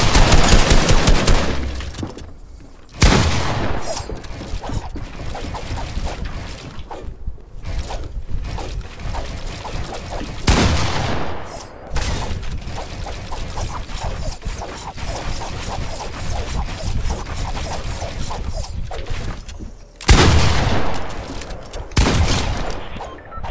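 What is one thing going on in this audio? Shotgun blasts boom in a video game.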